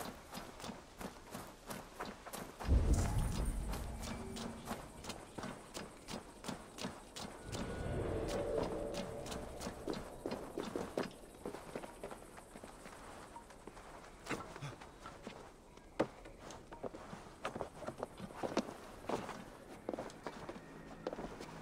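Footsteps tap steadily on the ground.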